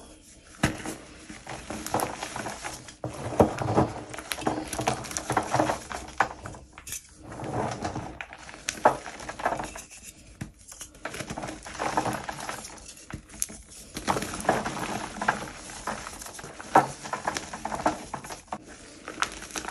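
Hands crumble chalky blocks that crunch and crack apart.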